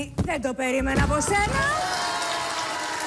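A woman speaks loudly and with animation into a microphone.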